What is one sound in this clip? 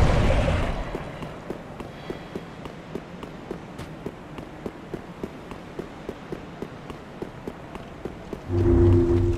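Armoured footsteps run quickly on stone.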